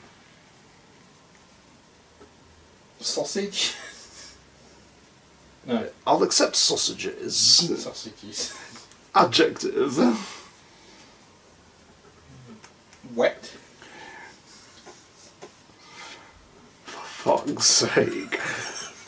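A man talks from across a small room.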